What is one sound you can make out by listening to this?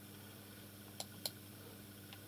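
A computer mouse clicks twice.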